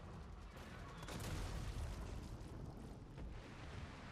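Loud explosions boom and roar.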